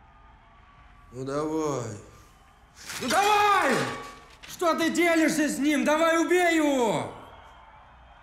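A young man speaks earnestly, close by.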